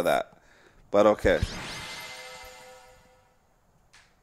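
A bright magical burst rings out and slowly fades.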